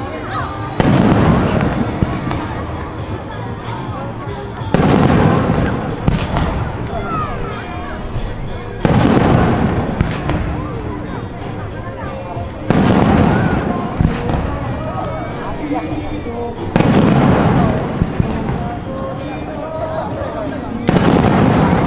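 Fireworks burst with deep booms at regular intervals, echoing outdoors.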